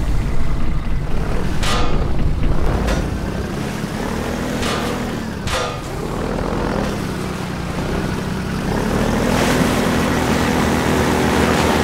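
A boat engine drones steadily, rising in pitch as it speeds up.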